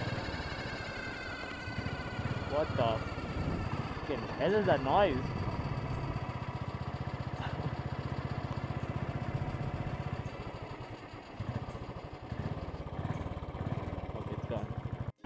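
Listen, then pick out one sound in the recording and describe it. A motorcycle engine thumps steadily while riding.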